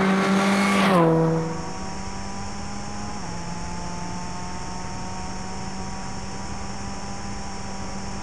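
A rally car's engine drones from inside the cabin at speed.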